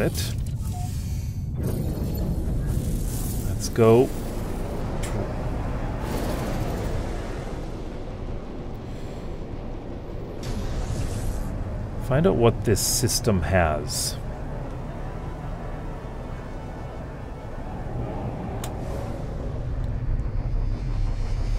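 A spacecraft engine hums and roars steadily.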